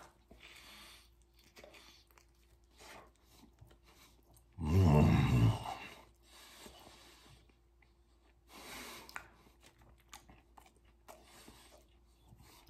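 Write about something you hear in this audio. A man chews food noisily.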